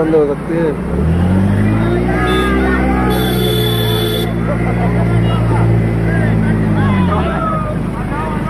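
A motorbike engine hums, rising and then falling in pitch.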